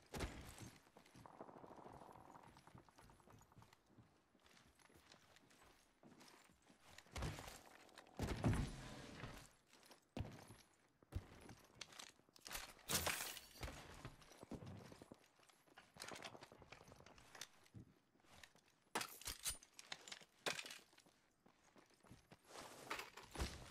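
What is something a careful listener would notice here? Footsteps clatter on hard floors and metal.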